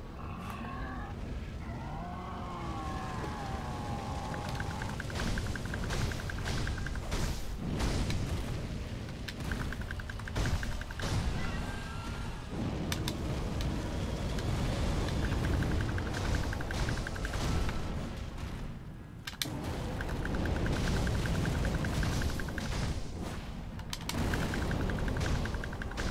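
A huge beast growls and roars.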